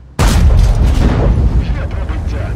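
A loud explosion booms at the start.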